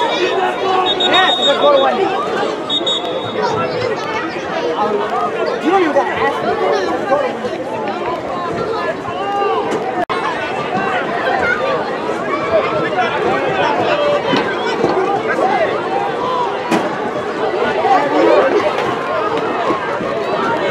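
A crowd of spectators chatters and calls out nearby outdoors.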